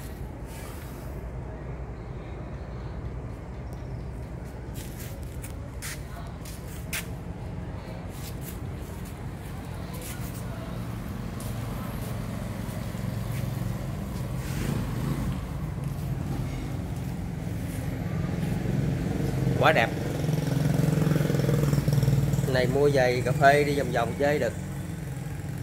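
A motorcycle engine idles with a low, steady rumble.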